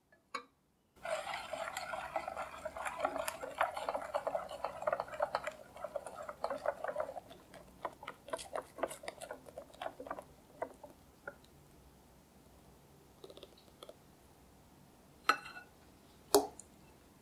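A wire whisk beats an egg yolk mixture in a glass bowl.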